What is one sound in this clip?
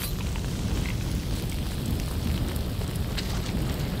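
Flames crackle and burn close by.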